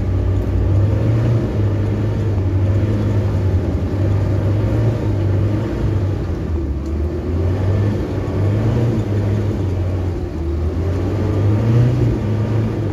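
A vehicle engine hums low and steady while driving slowly.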